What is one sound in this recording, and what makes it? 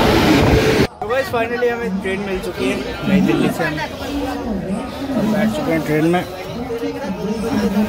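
Women talk nearby in calm voices.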